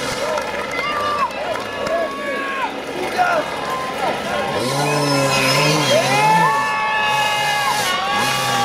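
A dirt bike engine revs up and down hard and close.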